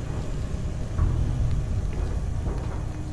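A boot kicks a metal panel with a dull thud.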